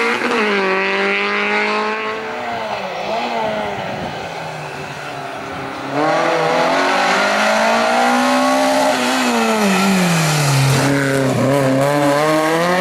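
A rally car engine revs hard and roars close by, rising and falling in pitch.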